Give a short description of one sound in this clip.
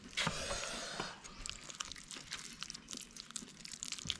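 A metal spoon scrapes and clinks against a plate.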